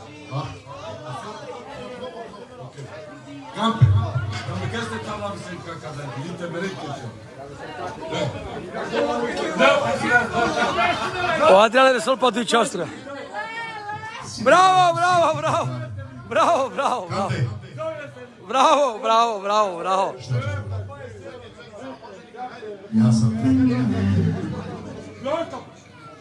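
A crowd of men talks loudly close by.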